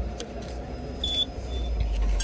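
A ticket scanner beeps briefly.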